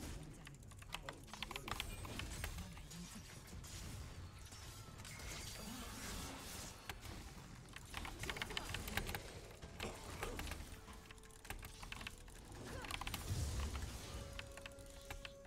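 Video game spell and hit effects crackle and whoosh rapidly.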